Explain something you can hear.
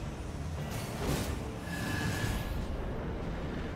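Metal blades clash and ring in a fight.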